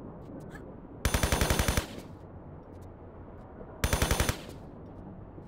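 A submachine gun fires in short rapid bursts.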